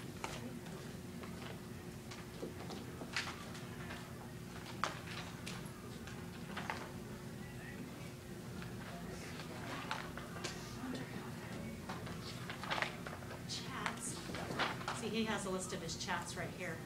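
A man taps at a laptop keyboard now and then.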